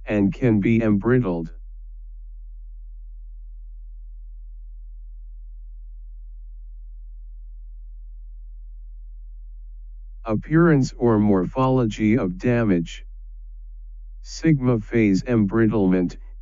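A man speaks calmly and clearly into a microphone, in short bursts with long pauses.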